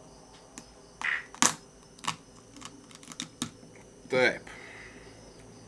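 A crab shell cracks and crunches as it is pulled apart by hand.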